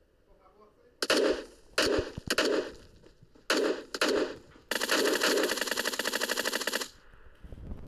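An automatic rifle fires in loud bursts, close by.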